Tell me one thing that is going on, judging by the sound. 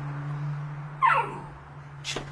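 A dog whines briefly with a high, falling cry.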